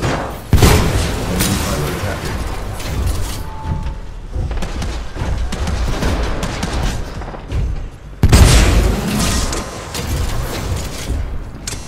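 Explosions rumble nearby.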